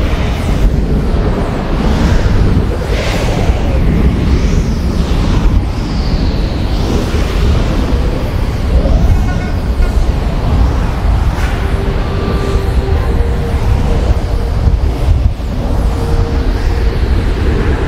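Wind rushes loudly past during a fast flight, with rising and falling whooshes.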